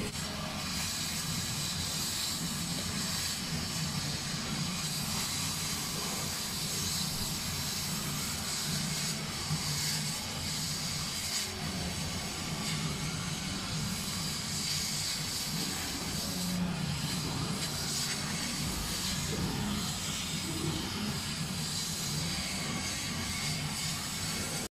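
A machine hums and whirs steadily.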